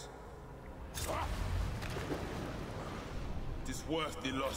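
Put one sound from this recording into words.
Water splashes as a body falls into it.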